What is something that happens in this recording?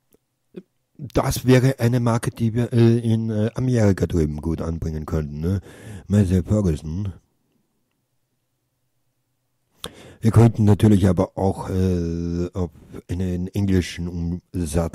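A man talks with animation, close to a microphone.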